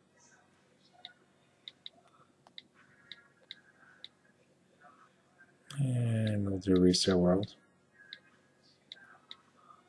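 A phone's keyboard clicks softly with each tap.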